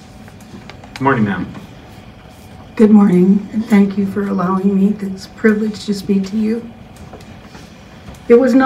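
An elderly woman speaks calmly into a microphone in a large room.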